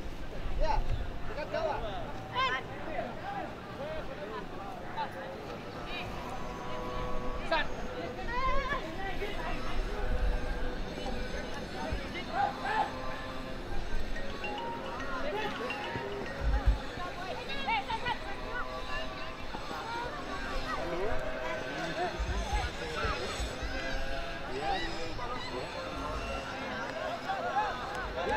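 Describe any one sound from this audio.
Young players shout and call to each other across an open field outdoors.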